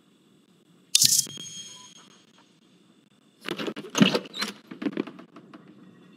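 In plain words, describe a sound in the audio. A door bangs and creaks open.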